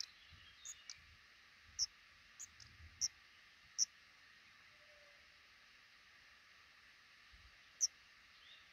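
Nestling birds give high, thin peeps in short bursts.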